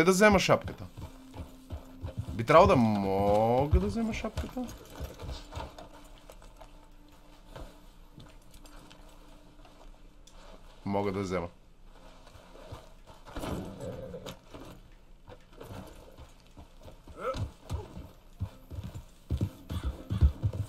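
A horse's hooves clop on a dirt track.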